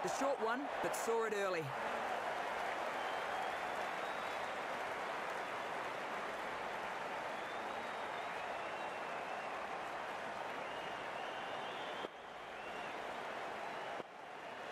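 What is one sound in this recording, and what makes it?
A large stadium crowd murmurs and cheers steadily.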